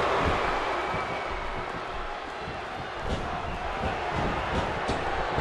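A large crowd cheers and roars steadily in an arena.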